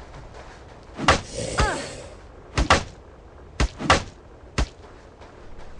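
Weapon blows strike a zombie with sharp thuds.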